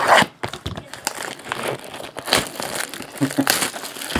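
Plastic shrink wrap crinkles as it is torn off a box.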